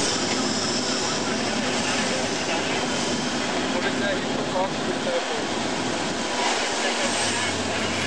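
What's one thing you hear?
Plastic toys rattle and splash as an excavator bucket scoops through them in water.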